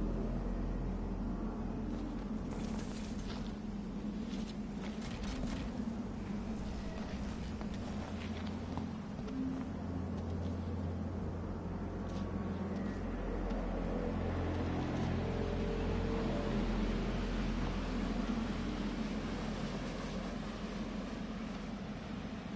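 Footsteps tread on asphalt.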